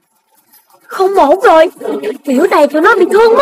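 A cartoon pig cries out in a whiny, shaky voice.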